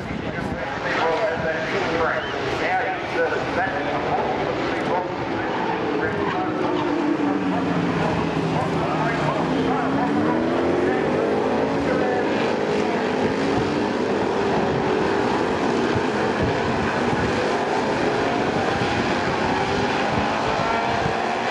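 Racing car engines roar and whine as cars speed past, rising and falling in pitch.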